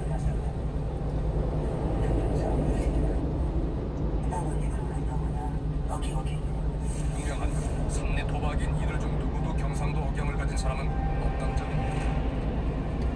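Traffic rumbles by on a busy road.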